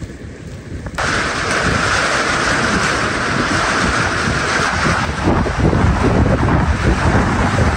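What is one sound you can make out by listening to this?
Wind roars through trees and rustles leaves.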